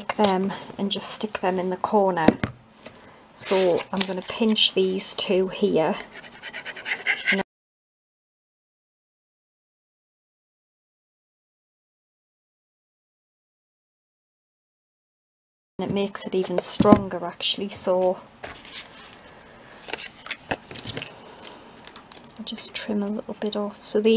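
Stiff card rustles and taps against a hard surface.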